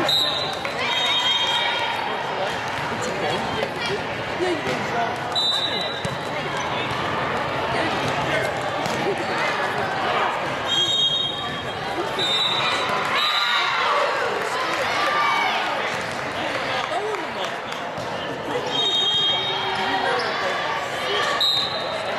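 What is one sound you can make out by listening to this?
Many voices chatter and call out in a large echoing gym.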